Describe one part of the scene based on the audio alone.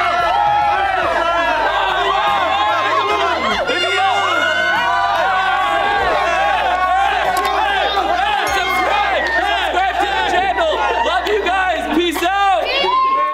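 A crowd of young men and women cheer and shout excitedly close by.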